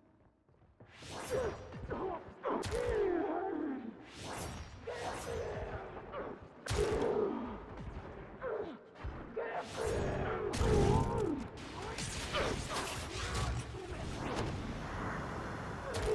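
Explosions boom and crackle.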